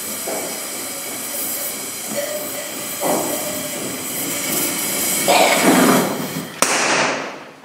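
A gas torch flame hisses and roars steadily.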